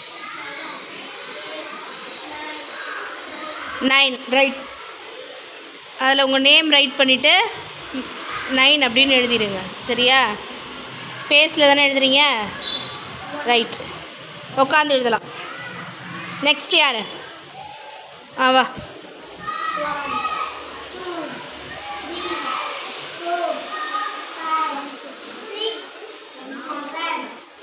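Children chatter softly in the background.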